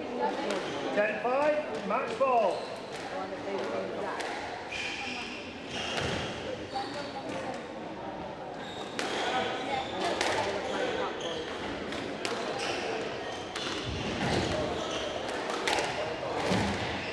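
Rubber shoes squeak on a wooden floor.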